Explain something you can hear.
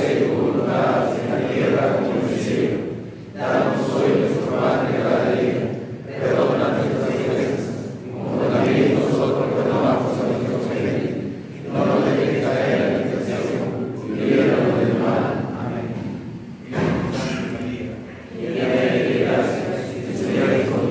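A congregation of men and women sings a hymn together in an echoing hall, pausing between phrases.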